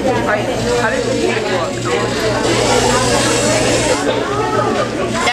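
Children talk nearby in a busy, echoing hall.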